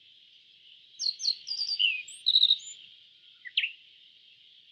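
A small bird sings a quick series of high chirps and trills.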